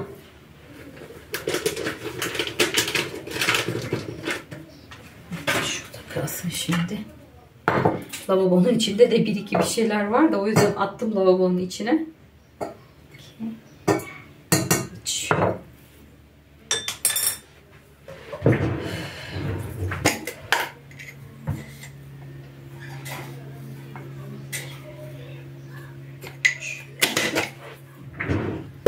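Plastic containers knock and clatter on a countertop.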